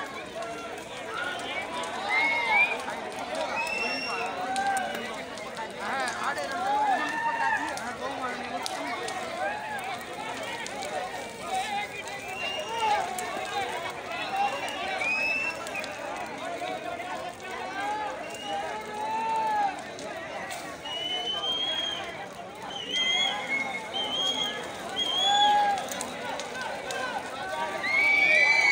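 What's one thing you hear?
A crowd of people chatters and calls out loudly outdoors.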